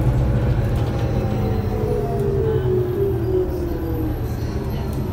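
A bus engine whines, falling in pitch as the bus slows.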